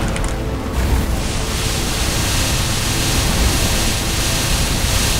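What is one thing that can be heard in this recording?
Game battle effects crash and roar loudly and continuously.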